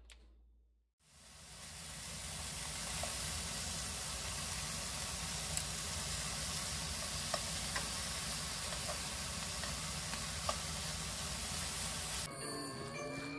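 Meat sizzles steadily in a hot frying pan.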